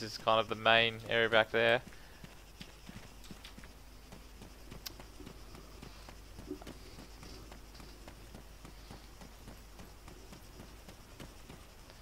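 Footsteps crunch steadily through dry grass and dirt.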